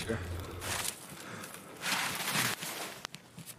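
Tall grass rustles and swishes as someone pushes through it.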